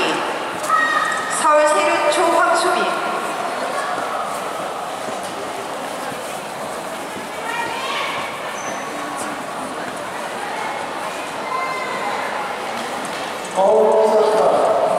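Children talk with lively voices nearby in a large echoing hall.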